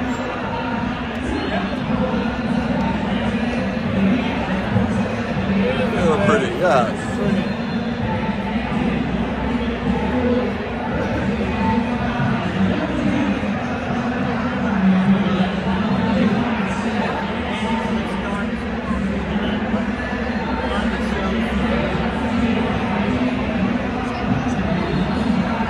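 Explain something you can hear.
A crowd murmurs in the distance in a large echoing hall.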